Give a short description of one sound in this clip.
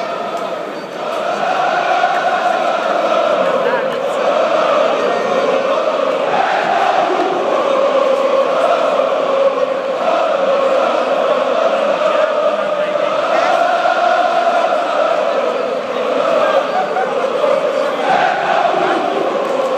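A large stadium crowd chants and sings loudly in unison, echoing around the stands.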